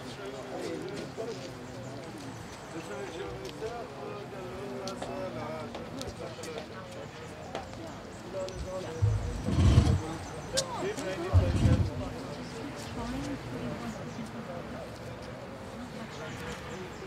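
Several men chat quietly nearby outdoors.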